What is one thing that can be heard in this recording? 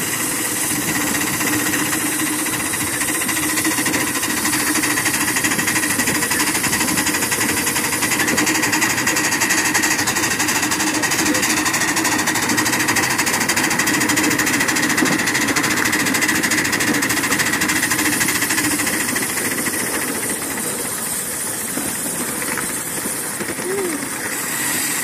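Metal wheels rumble and clack along rails.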